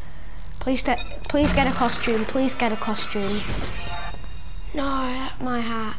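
A game machine whirs and chimes as it hands out a prize.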